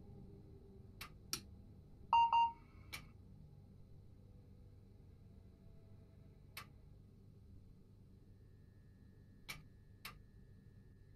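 A switch clicks several times.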